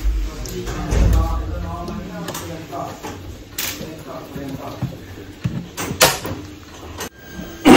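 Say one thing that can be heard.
Small plastic parts click and knock as they are fitted into a machine's holder.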